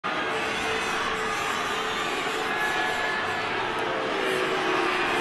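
A large stadium crowd murmurs and chatters steadily in the open air.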